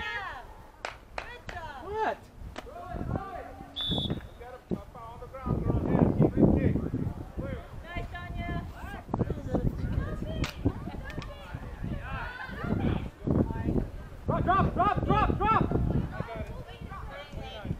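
Young girls shout and call out to each other across an open field.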